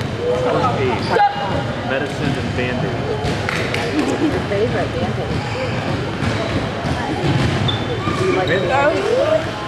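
Several men talk and call out in a large echoing hall.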